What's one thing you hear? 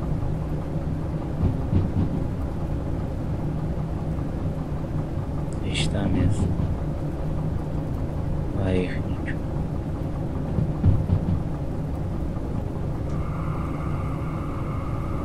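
Locomotive wheels roll along rails.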